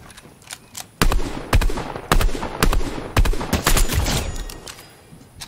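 A rifle fires rapid loud shots.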